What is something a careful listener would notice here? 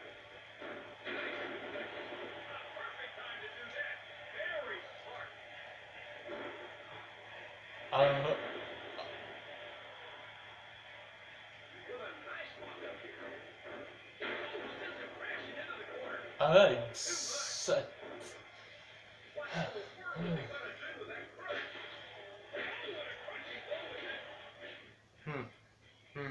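A wrestling video game's crowd noise and impacts play from a television speaker.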